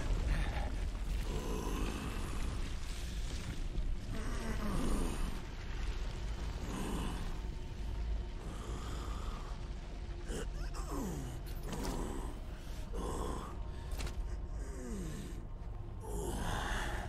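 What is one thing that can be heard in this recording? A man groans and gasps heavily in pain, close by.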